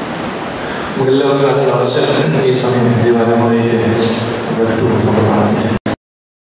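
A man recites in a melodic voice through a microphone in an echoing hall.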